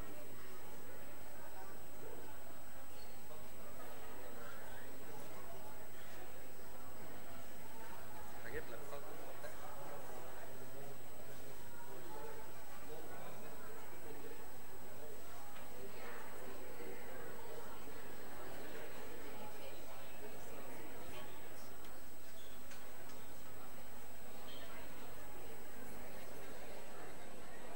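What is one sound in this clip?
An elderly man chants through a microphone in an echoing hall.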